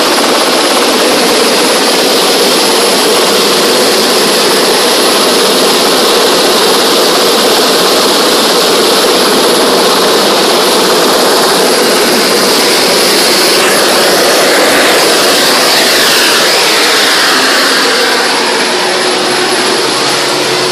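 A helicopter engine roars and whines steadily close by.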